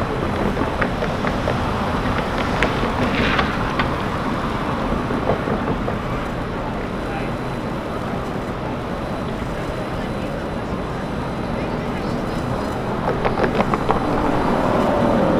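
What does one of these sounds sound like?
Busy city traffic rumbles steadily outdoors.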